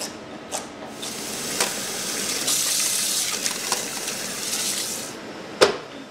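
Water pours from a tap into a pot.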